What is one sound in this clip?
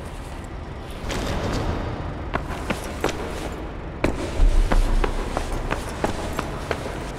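Footsteps hurry over a stone floor.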